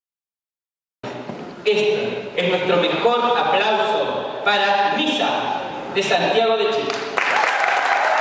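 A young woman speaks with animation through a loudspeaker in a large hall.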